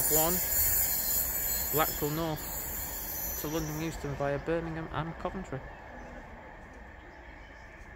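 A train rumbles along the tracks and slowly fades.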